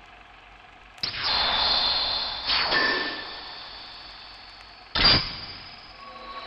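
A magical shimmering whoosh sounds as a door glows.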